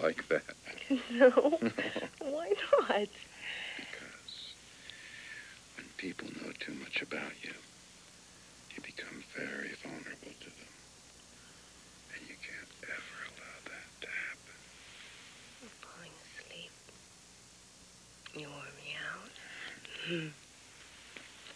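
A man speaks softly and closely.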